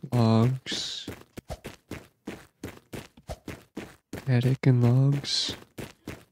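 Quick footsteps tap steadily on a hard floor.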